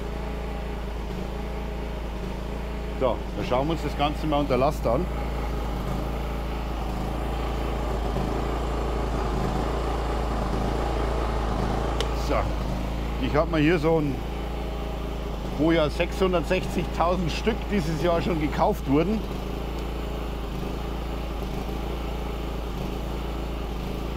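A generator engine hums steadily nearby.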